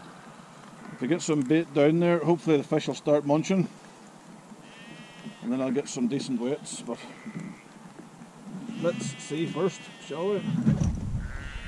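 A middle-aged man talks casually, close to the microphone.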